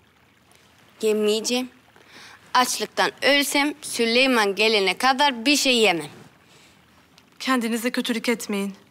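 A young woman speaks up close, earnestly and with feeling.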